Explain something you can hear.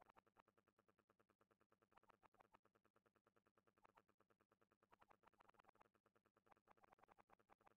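Quick cheerful game blips pop in a rapid, steady stream.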